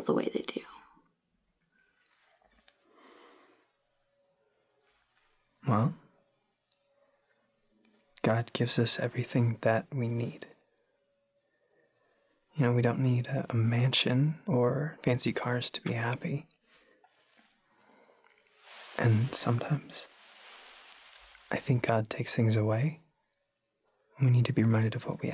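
A young woman speaks quietly up close.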